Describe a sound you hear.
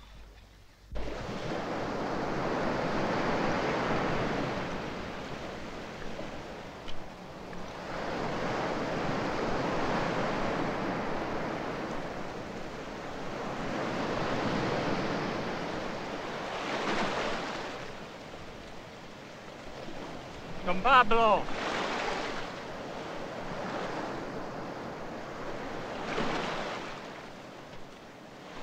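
Waves wash onto a shore and draw back in slow swells.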